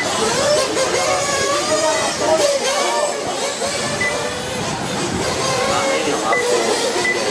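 Small electric racing cars whine as they speed around a track.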